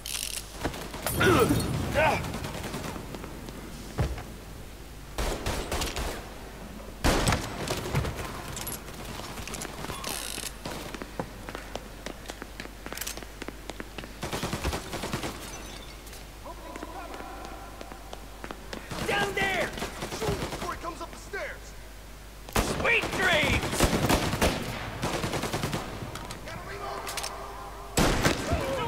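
Gunshots crack and echo in a large hall.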